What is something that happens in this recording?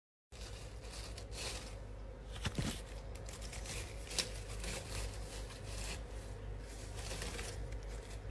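Rose stems and leaves rustle as a hand moves them.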